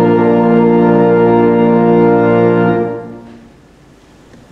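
A congregation sings a hymn together, ending on a long held chord in an echoing hall.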